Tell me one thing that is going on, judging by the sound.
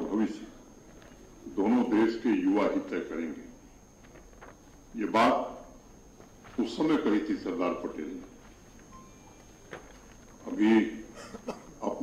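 A middle-aged man speaks slowly and formally into a microphone, with pauses between phrases.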